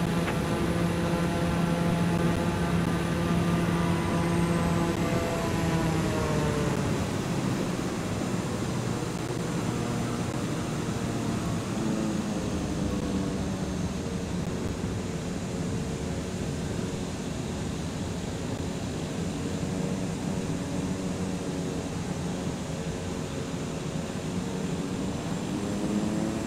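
A small propeller plane's engine drones steadily, dropping in pitch as it slows down and then rising slightly again.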